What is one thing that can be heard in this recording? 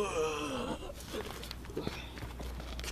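A body thumps and scrapes onto pavement.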